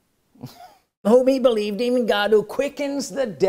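A man speaks loudly and theatrically into a clip-on microphone, close up.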